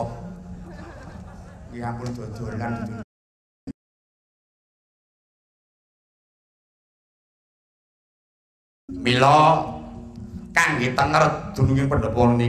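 A man voices characters in a loud, dramatic, sing-song voice, heard through a microphone.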